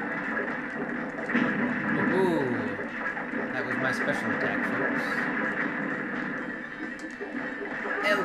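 A giant monster smashes a building and crashes rubble down.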